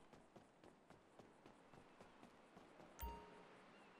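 Footsteps thud on wooden boards.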